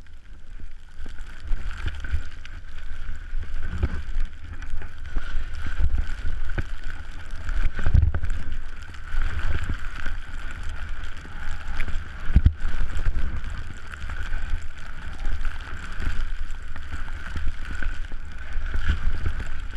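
Skis hiss through deep powder snow.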